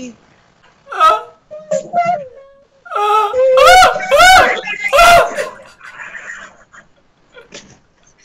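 A young man laughs loudly and shrieks with excitement close to a microphone.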